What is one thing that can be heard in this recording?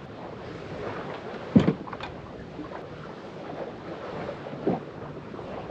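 A kayak thumps against the ground as it is unloaded from a car roof.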